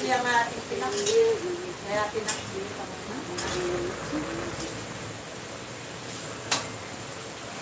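Metal utensils clink and knock against cookware.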